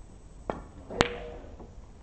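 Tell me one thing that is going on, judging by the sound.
Snooker balls knock together with a crisp clack.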